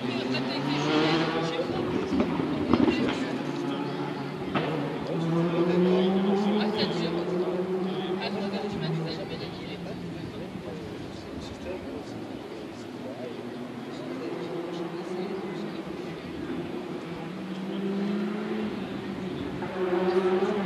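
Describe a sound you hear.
A crowd of spectators chatters in the distance outdoors.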